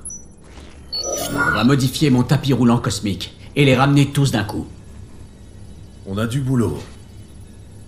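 A man speaks in a deep, serious voice.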